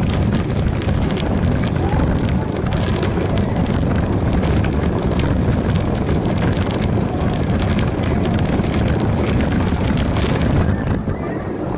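Bicycle wheels rattle over pavement.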